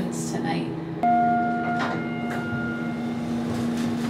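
Elevator doors slide open.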